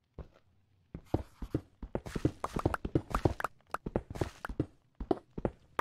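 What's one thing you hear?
Blocks of stone crunch and crack as they are broken, in quick repeated bursts.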